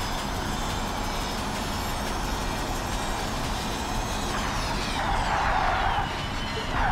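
An electric race car's motor whines at speed, then drops in pitch as the car brakes.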